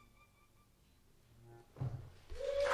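A violin is bowed softly, its last note fading out.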